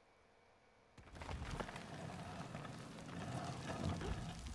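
A heavy stone disc grinds as it turns.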